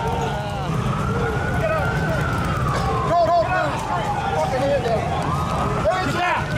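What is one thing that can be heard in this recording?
A crowd of men and women shout and talk excitedly close by, outdoors.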